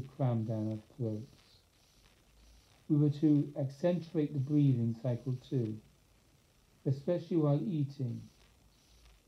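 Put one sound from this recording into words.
An elderly man speaks calmly and closely, reading out in short phrases.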